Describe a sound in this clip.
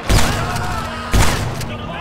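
A rifle fires a shot.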